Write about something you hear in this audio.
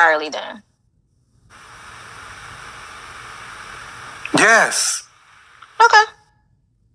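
A young woman speaks in short bursts over an online call.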